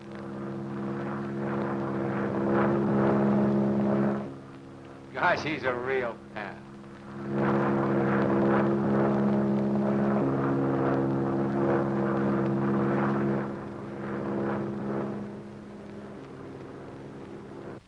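A biplane's engine drones in flight.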